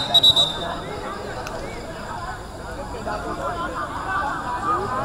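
Men shout to each other across an outdoor field.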